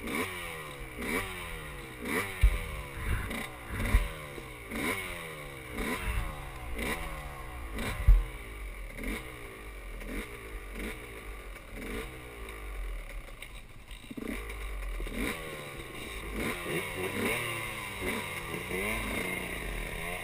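Another dirt bike engine revs a short way ahead.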